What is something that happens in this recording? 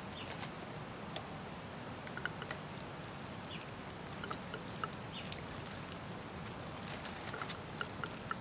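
Water trickles from a jug's spout onto a hand and dry leaves.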